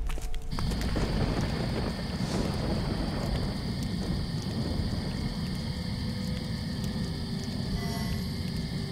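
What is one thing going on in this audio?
Water rushes steadily in a stream.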